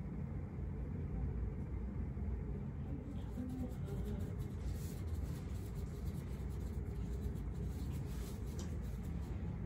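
A gloved hand rubs and pats bare skin.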